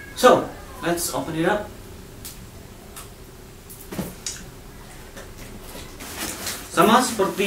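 A young man talks calmly, close by.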